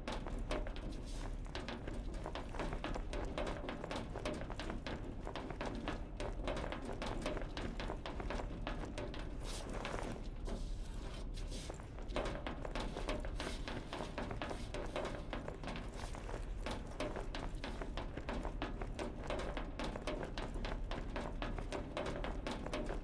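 Footsteps clang quickly on metal grating.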